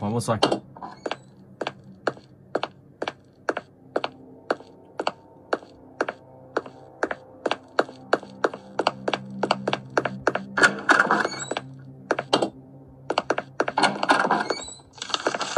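Footsteps thud at a steady walking pace.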